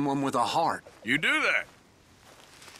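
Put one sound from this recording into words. A second man answers briefly.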